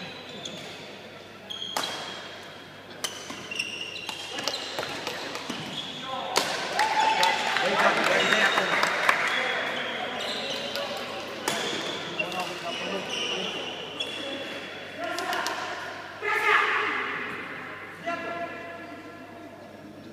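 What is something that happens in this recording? Sports shoes squeak on a hard court floor.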